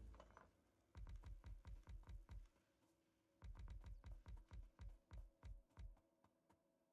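Stone furnaces thump down one after another in a quick, even rhythm.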